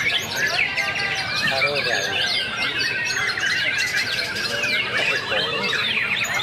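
A songbird sings rapid, varied warbling phrases close by.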